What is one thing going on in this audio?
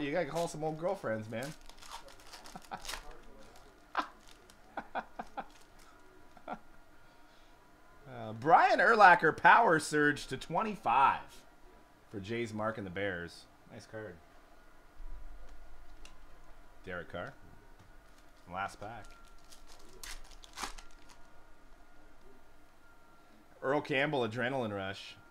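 Foil card wrappers crinkle and tear.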